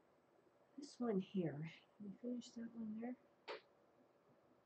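An older woman speaks calmly into a nearby microphone.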